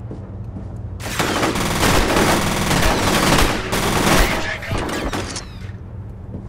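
An automatic rifle fires a rapid burst of gunshots.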